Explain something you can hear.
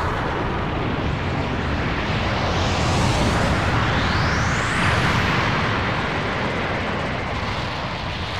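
A huge energy blast roars and rumbles steadily.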